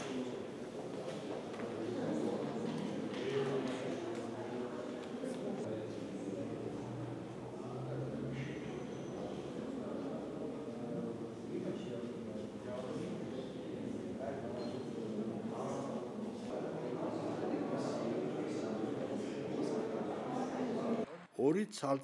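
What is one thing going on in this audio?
A crowd murmurs in an echoing hall.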